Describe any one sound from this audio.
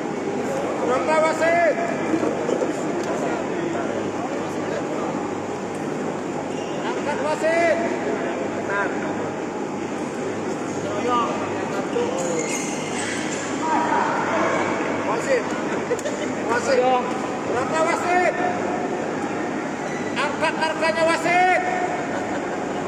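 Spectators cheer and shout in short bursts.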